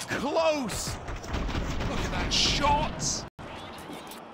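Gunshots fire rapidly in a video game.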